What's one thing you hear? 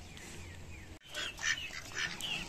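Ducks quack softly.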